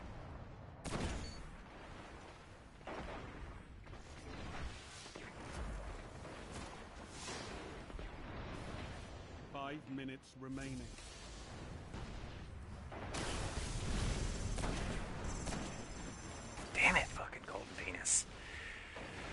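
Sniper rifle shots crack with a short echo.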